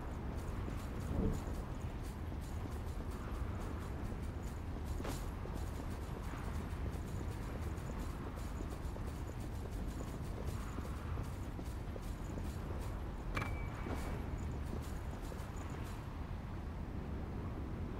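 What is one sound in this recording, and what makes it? Footsteps tap quickly on rocky ground.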